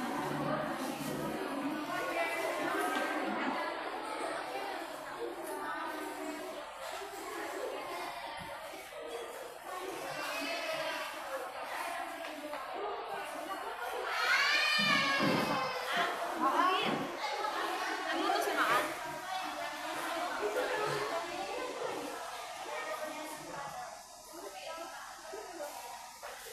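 A crowd of people chatter throughout a large echoing hall.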